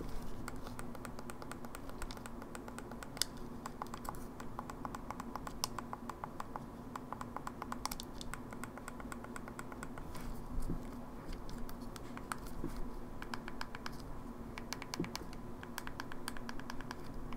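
Fingernails tap rapidly on a hard plastic casing, close up.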